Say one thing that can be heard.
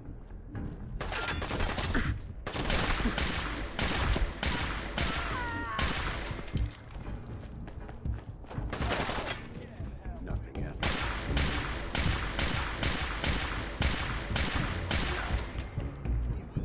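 A rifle fires sharp shots in quick bursts.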